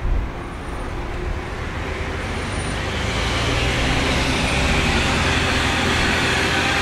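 Bus engines hum steadily nearby.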